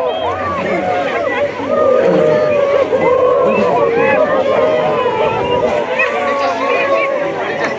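A large crowd of men and women shouts and chatters loudly outdoors.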